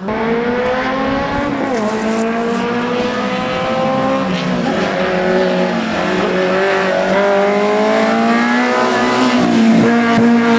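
A small car's engine revs hard and climbs through the gears as it races closer.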